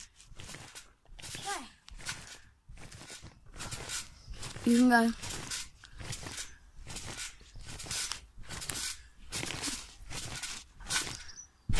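Trampoline springs creak and thump with each bounce.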